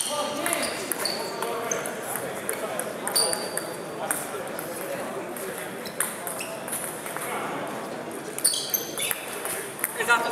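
A ping-pong ball clicks sharply back and forth off paddles and a table.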